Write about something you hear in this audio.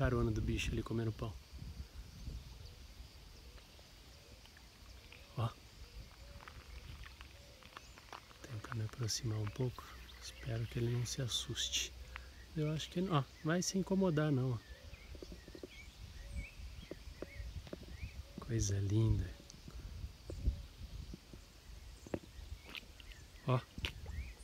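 A small animal paddles and splashes softly in water.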